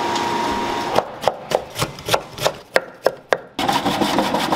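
A knife chops quickly on a wooden board.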